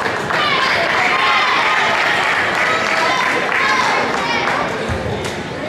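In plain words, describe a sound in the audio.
Young women on a team shout and cheer together.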